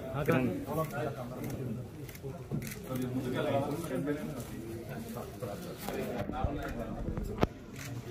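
Cellophane wrapping on a bouquet rustles and crinkles.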